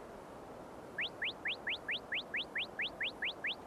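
Quick rising electronic beeps tick in steady succession.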